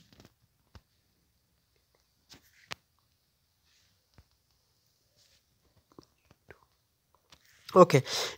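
Keys tap softly on a phone's touch keyboard.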